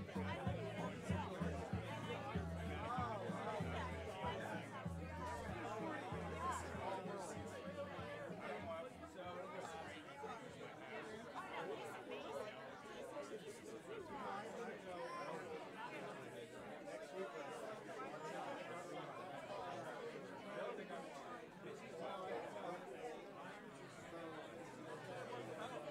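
A crowd of men and women chat and murmur in a room.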